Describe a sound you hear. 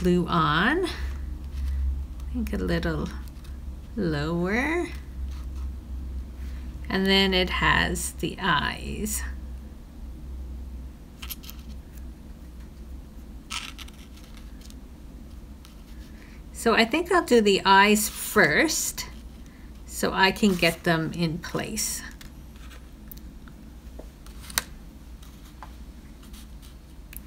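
Paper rustles softly as it is handled on a table.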